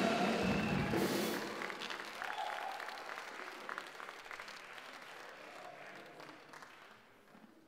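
A crowd claps hands in an echoing hall.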